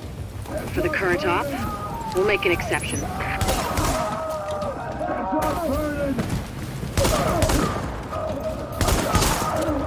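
Gunfire bursts out in rapid volleys.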